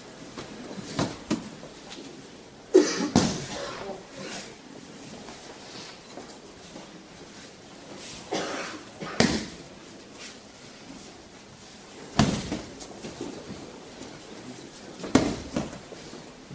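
Bodies thud onto a mat in a large echoing hall.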